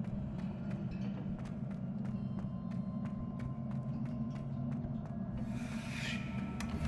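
Quick footsteps tap on a hard stone floor.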